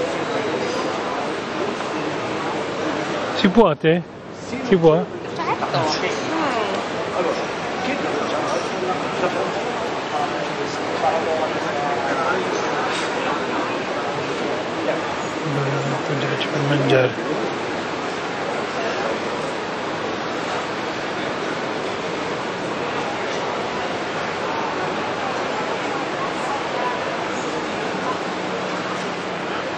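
A crowd of people chatters steadily nearby.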